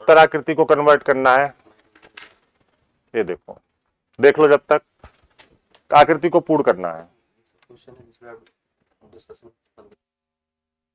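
A man speaks clearly into a microphone, explaining with animation.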